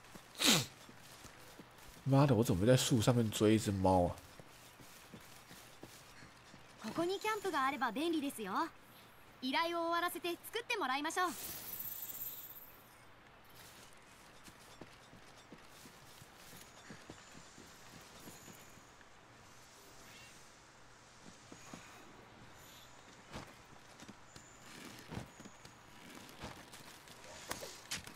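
Footsteps rustle softly through undergrowth.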